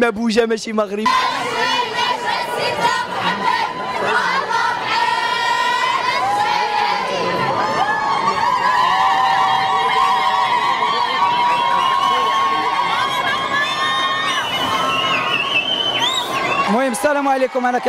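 A crowd of women and girls sings and chants together loudly.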